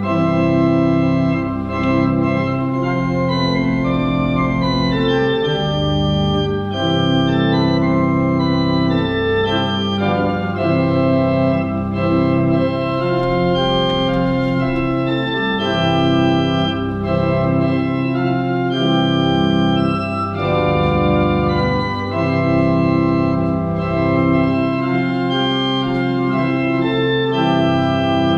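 A small group of men and women sings a slow hymn in a large echoing hall.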